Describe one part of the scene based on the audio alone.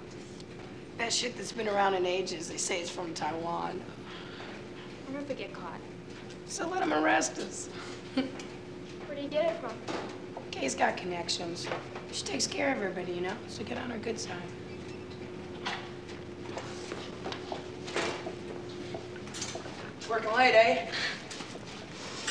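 A second young woman answers calmly.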